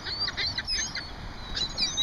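Wings flap as a bird lands close by.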